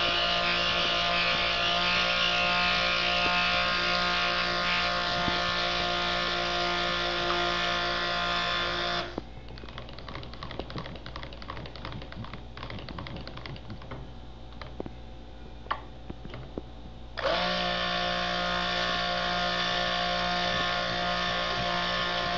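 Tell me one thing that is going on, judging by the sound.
A hand blender whirs loudly with a steady high hum.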